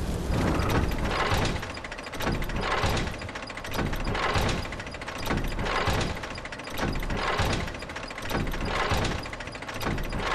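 A heavy stone mechanism grinds and rumbles as it moves.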